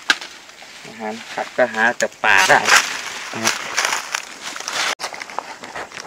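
Leaves rustle and snap as a man pulls at a bush.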